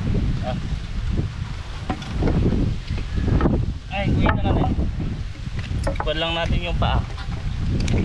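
Wooden boards knock against each other.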